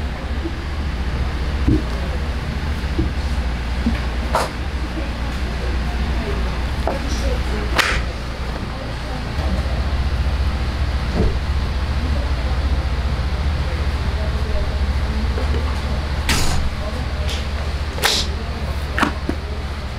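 Raw meat slaps and thuds on a cutting board as it is handled.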